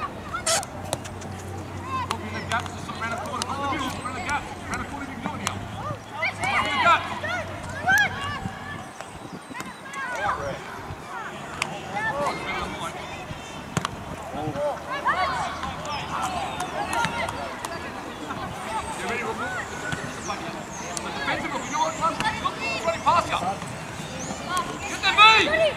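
Young players shout and call to each other across an open pitch.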